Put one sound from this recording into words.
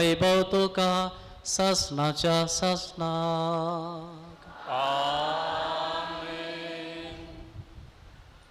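A man chants in song through a microphone, echoing in a large hall.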